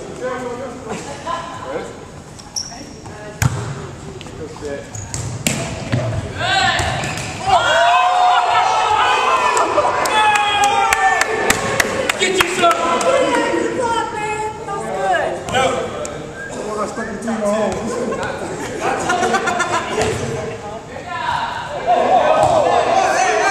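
Young men shout and talk with animation in a large echoing hall.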